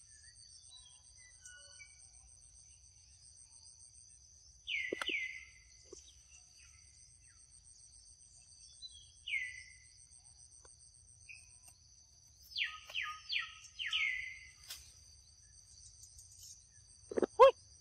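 Monkeys munch noisily on juicy fruit.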